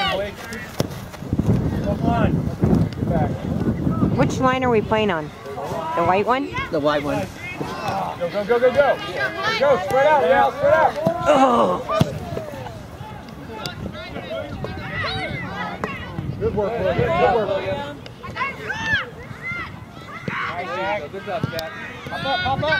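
Adults on the sideline shout and cheer outdoors.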